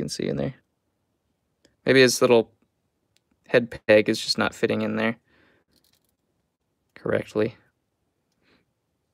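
Small plastic toy pieces click softly as fingers fit them together.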